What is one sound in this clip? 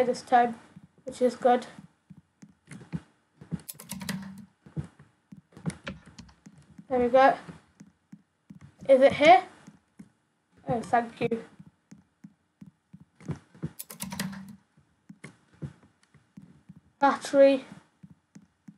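A boy talks in short bursts close to a microphone.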